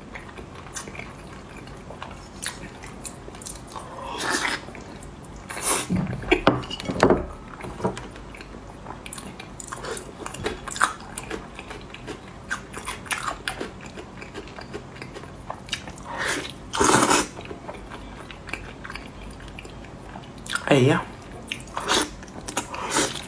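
A young woman chews and smacks her lips loudly, close up.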